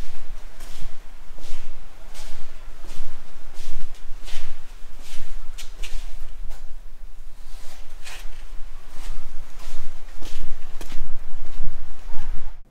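Footsteps crunch on a gritty concrete floor at a steady walking pace.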